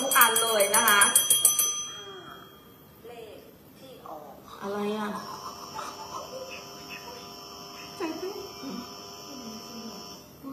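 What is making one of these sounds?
A woman talks with animation, close to a phone microphone.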